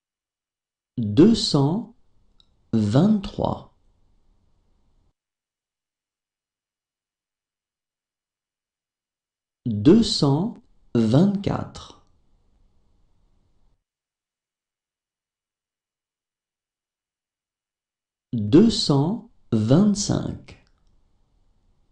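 A man reads out numbers clearly into a close microphone, with long pauses between them.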